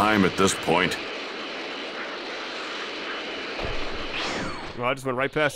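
A rushing, roaring whoosh of energy swells and then fades away.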